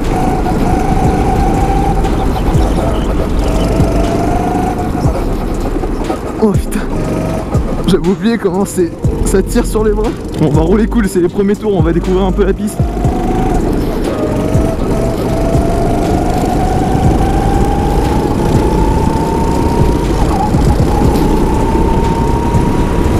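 A kart engine roars up close, rising in pitch as it speeds up and dropping on the corners.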